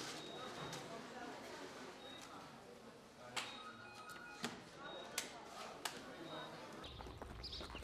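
Papers rustle and knock against a counter.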